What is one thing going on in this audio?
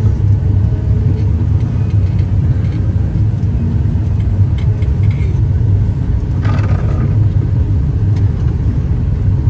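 A heavy loader's diesel engine rumbles loudly and steadily from inside the cab.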